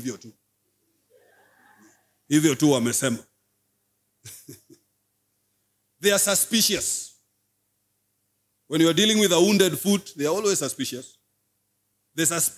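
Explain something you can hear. A man speaks into a microphone in bursts with pauses, calmly and with emphasis.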